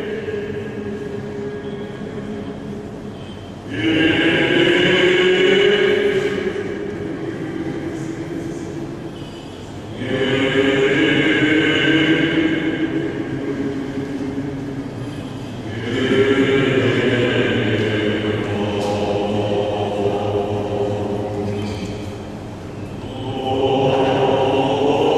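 A choir of men chants together in a large echoing hall, swelling and falling in waves.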